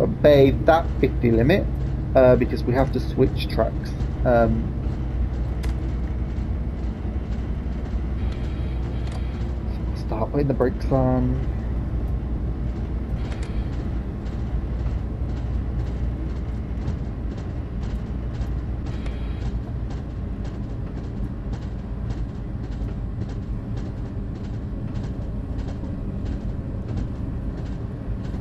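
A train engine hums low and steady.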